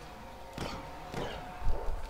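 A laser gun fires in short bursts.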